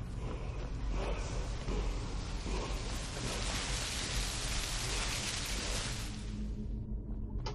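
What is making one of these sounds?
A magical whooshing hum swells and fades.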